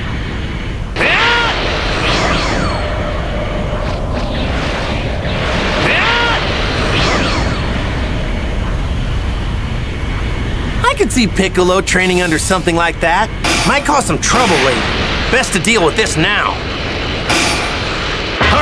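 A loud energy whoosh bursts out and fades.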